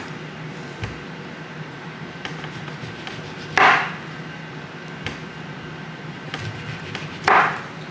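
A knife cuts through orange peel.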